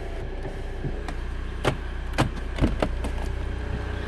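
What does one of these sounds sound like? A car door handle clicks.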